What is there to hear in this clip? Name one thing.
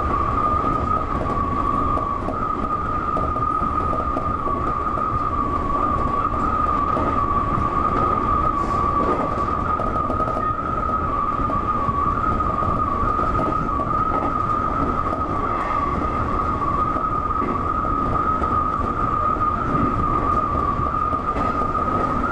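An electric motor whines steadily.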